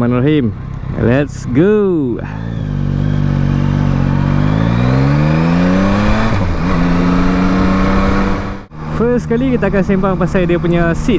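A motorcycle engine revs up and down and rises in pitch through the gears.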